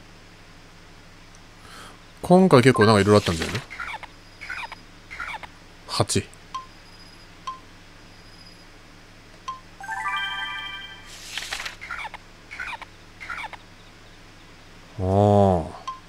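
A paper page flips over.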